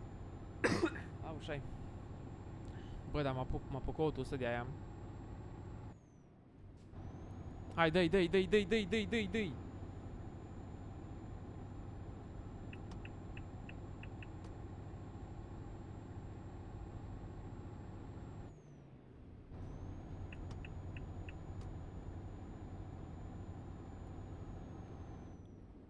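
Tyres roll on a motorway.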